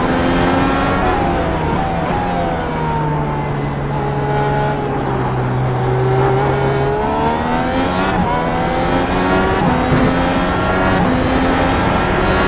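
A racing car engine screams loudly, dropping in pitch as it slows and then rising again as it speeds up.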